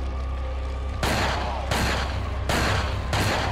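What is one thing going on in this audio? Heavy gunshots boom one after another.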